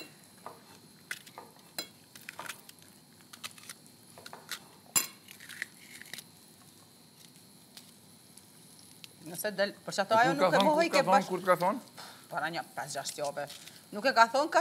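A knife taps on a cutting board as vegetables are chopped.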